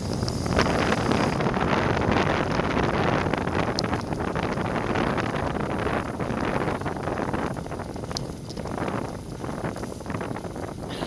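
Tyres hiss on a wet road surface.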